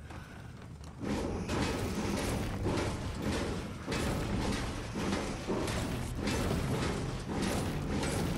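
A pickaxe strikes metal again and again.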